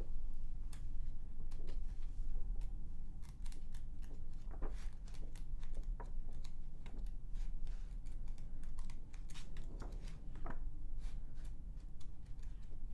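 Magazine pages flip and rustle close by.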